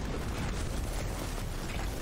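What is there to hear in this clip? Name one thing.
An explosion booms.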